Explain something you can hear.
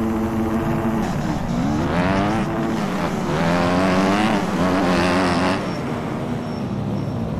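A motorbike engine revs up and down as the bike accelerates.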